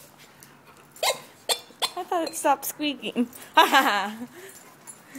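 A rubber dog toy squeaks several times in quick bursts.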